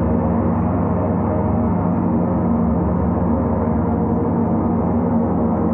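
Large gongs ring with a deep, steady, shimmering drone.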